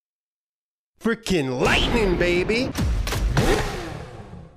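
A man shouts and sings with animation into a microphone.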